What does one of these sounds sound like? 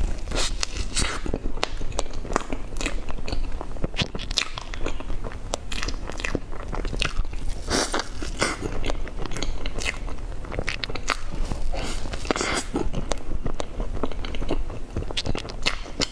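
A young woman chews soft cream cake wetly and noisily close to a microphone.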